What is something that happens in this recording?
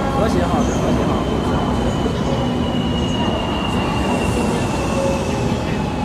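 A high-speed train glides past with a steady rushing hum.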